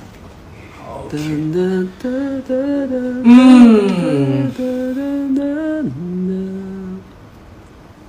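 A young man sings a short melody close to the microphone.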